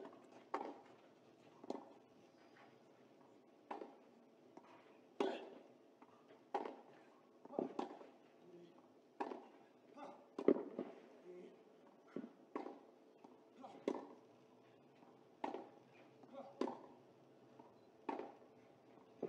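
Tennis balls are struck hard by rackets and bounce on clay in a long rally.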